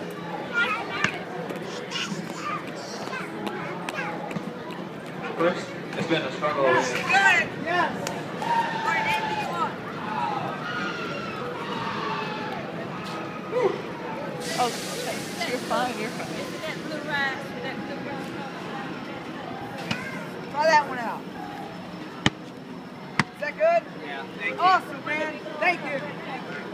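Young children squeal and shout excitedly close by.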